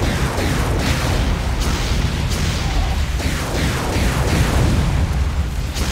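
A deep engine rumbles steadily.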